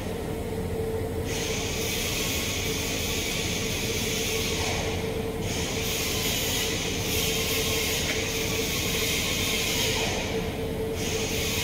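A gas torch hisses and roars steadily.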